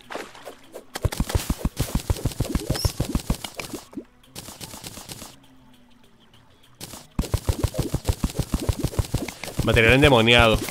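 A pickaxe taps rapidly, digging through blocks in a game.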